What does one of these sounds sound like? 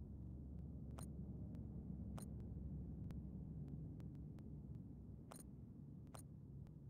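Soft clicks tap now and then.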